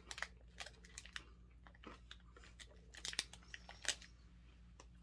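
A food wrapper crinkles close by.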